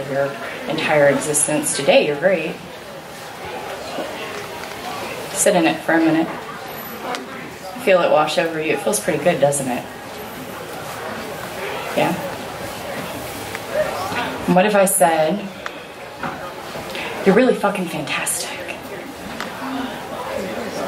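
A young woman speaks calmly into a microphone, with pauses.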